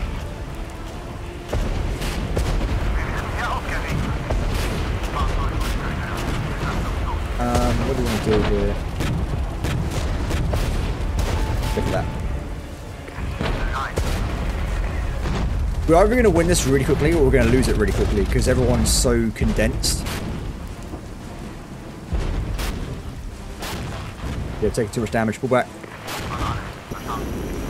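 Guns fire and shells explode in a distant battle.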